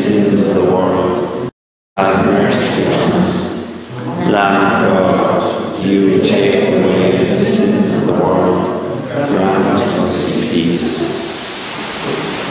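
An elderly man chants in a large echoing hall.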